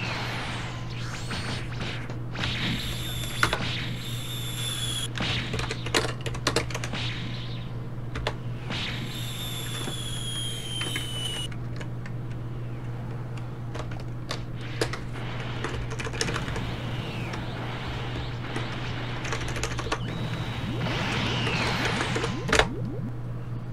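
Video game energy blasts whoosh and crackle.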